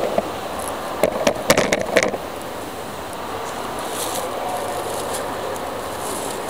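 A bag rustles as a man rummages in it.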